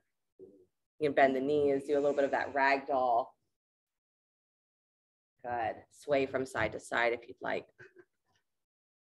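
A woman talks animatedly close by.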